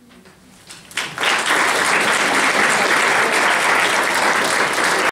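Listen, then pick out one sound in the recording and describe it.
An audience applauds loudly in a room.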